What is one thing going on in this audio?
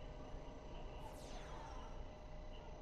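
A shimmering magical whoosh sweeps downward.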